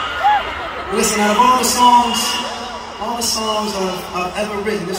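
A man sings through loudspeakers.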